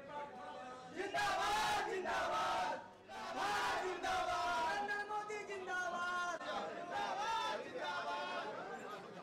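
A crowd of men shouts slogans loudly in unison.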